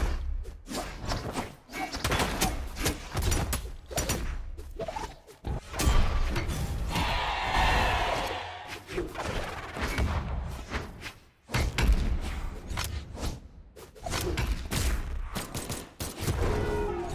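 Game weapons swing and hit with sharp whooshes and thuds.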